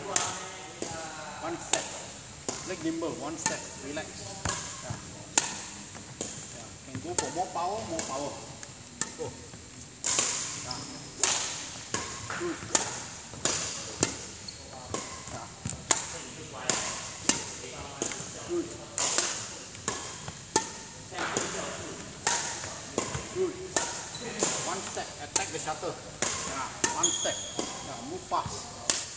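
A racket smacks shuttlecocks again and again in a large echoing hall.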